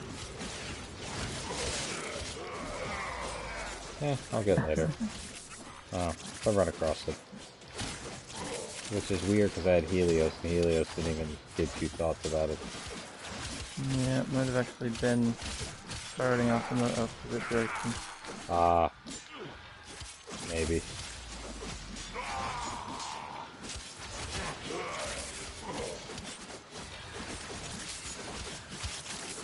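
Blades swish and clang in quick, repeated strikes.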